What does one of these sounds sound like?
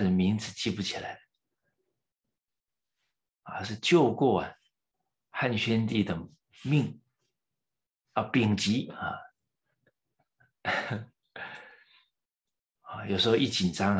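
A middle-aged man speaks calmly through a microphone in short phrases, with pauses.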